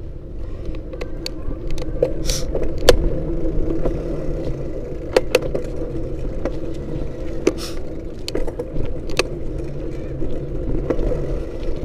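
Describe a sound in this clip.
Loose parts rattle and knock sharply as the vehicle rolls over a bumpy road.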